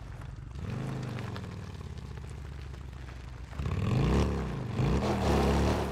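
A motorcycle engine rumbles and revs louder.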